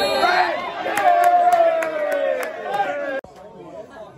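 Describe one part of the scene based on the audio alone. A man shouts loudly in protest close by.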